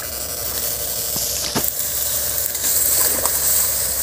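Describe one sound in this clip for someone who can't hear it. Tall reeds rustle and swish as they are pushed aside.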